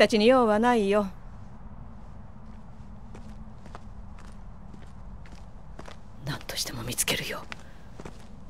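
A woman speaks in a sly, theatrical voice, close by.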